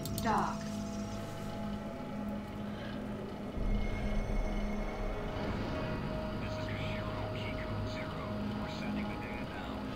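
A spaceship engine roars as it speeds up.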